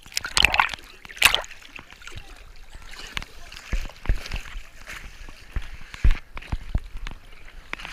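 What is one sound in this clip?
Hands paddle and splash through the water.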